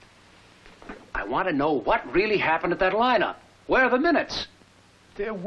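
Another man speaks firmly, close by.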